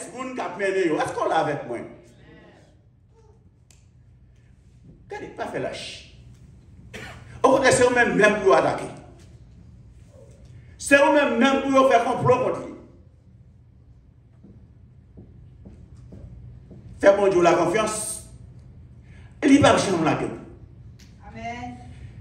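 A middle-aged man preaches with animation through a handheld microphone, in bursts separated by pauses.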